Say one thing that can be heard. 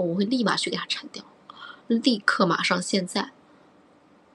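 A young woman speaks brightly and close up into a microphone.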